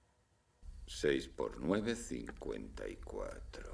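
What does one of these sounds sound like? A man speaks quietly indoors.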